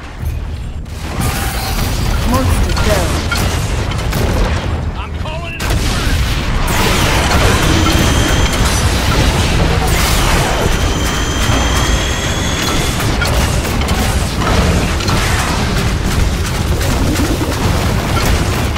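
Loud electric crackling and blasts of energy weapons fire rapidly.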